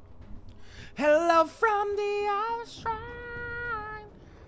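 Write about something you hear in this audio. A young man sings in long drawn-out notes close to a microphone.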